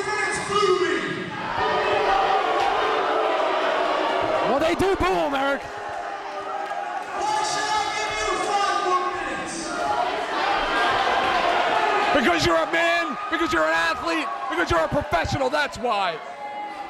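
A crowd cheers and chants.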